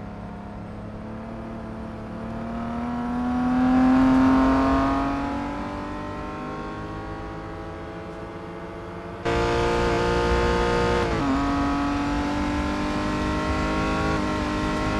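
A racing car engine whines loudly as the car speeds past.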